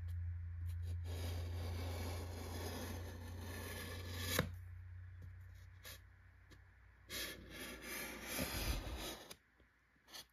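A pencil scratches lightly along a board.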